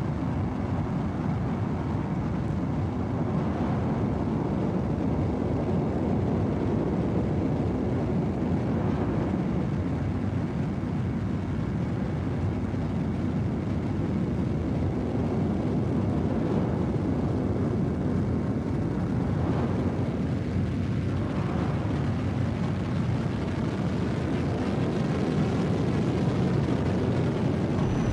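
A spacecraft engine rumbles steadily and deeply.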